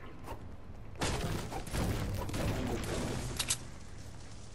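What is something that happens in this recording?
A pickaxe strikes a tree trunk with sharp thuds.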